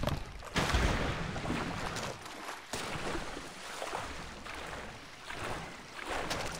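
Water splashes and sloshes as a swimmer strokes through it.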